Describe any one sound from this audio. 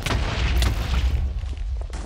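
A bow twangs as arrows fly.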